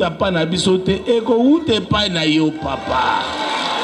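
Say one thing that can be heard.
A man speaks loudly into a microphone, up close.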